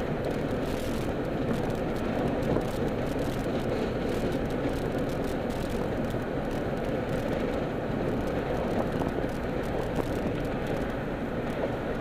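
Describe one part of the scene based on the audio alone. Tyres roll and rumble on the road.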